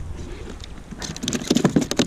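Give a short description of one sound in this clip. A fish thumps and flaps against a plastic hull.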